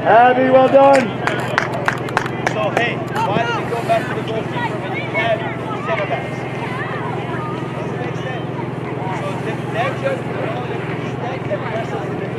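Young women shout and call out across an open field outdoors.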